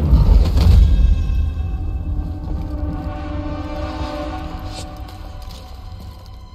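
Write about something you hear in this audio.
A large creature roars and groans as it dies.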